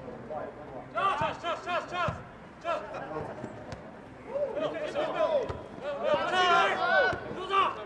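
Players shout to each other in the distance.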